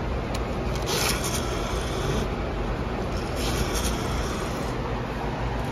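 A bill acceptor whirs briefly as it pulls in a banknote.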